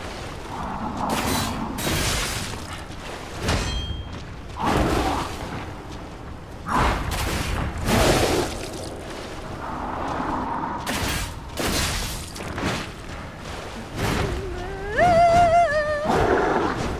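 Heavy weapon blows thud and slash in quick bursts.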